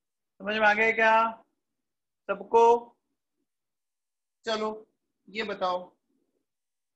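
A man speaks calmly in short phrases through a close microphone.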